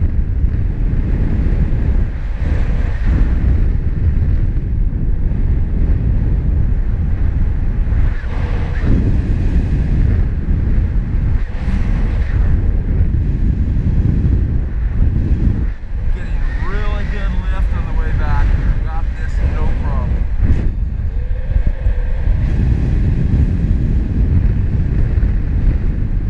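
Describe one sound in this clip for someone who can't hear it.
Wind roars steadily past the microphone during flight.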